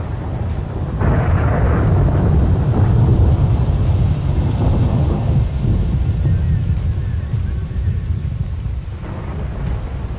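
Thunder rumbles deeply and slowly fades.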